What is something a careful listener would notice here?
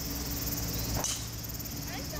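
A golf club strikes a ball with a sharp crack.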